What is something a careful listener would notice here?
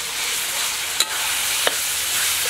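A metal spatula scrapes and knocks against a wok.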